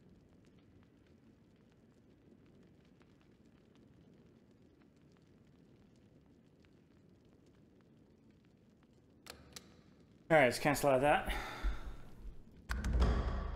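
A game menu clicks softly as buttons are pressed.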